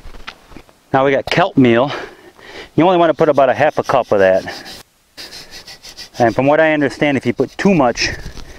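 A man talks calmly outdoors.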